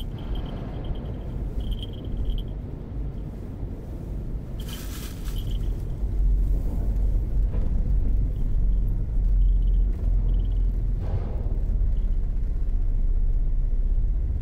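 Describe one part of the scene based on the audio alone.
A motorcycle engine runs nearby.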